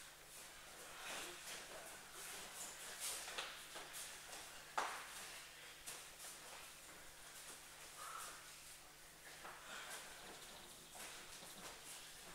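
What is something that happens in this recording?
Heavy cloth jackets rustle as two men grapple.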